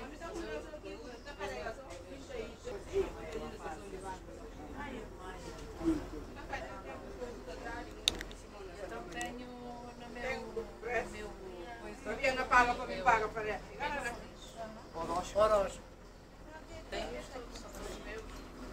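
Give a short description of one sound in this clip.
Adult passengers talk nearby, inside a bus.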